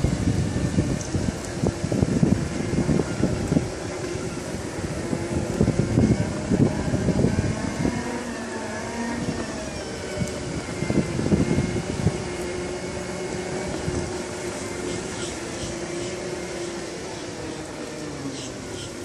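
Electric scooter motors whine softly as they roll along.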